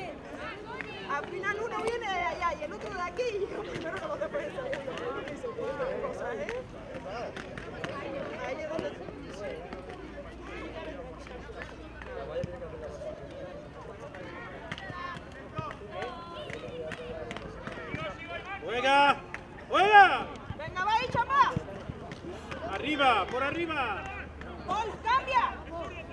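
Young boys shout and call out to each other across an open outdoor field.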